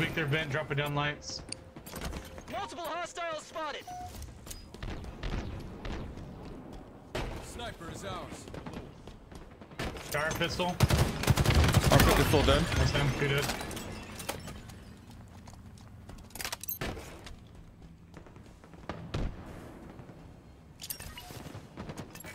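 Gunfire from a game bursts in quick shots.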